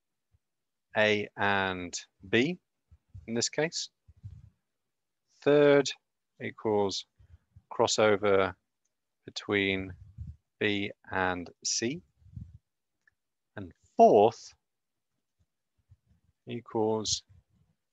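A young man speaks calmly and explains through a close microphone, with short pauses.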